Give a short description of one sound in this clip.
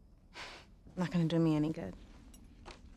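A teenage girl answers softly and close by.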